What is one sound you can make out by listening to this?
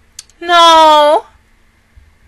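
A young woman sings a short, loud held note close into a microphone.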